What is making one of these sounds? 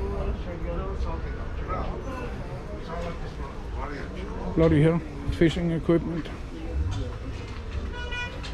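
Voices of passers-by murmur in the background outdoors.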